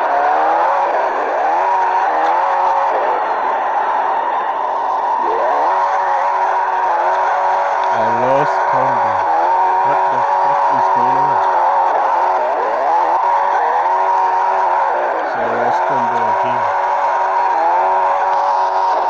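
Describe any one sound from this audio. A racing car engine revs high and shifts through gears.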